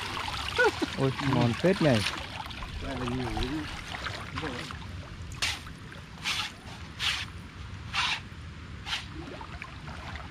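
Water splashes and drips as a net is lifted from the river.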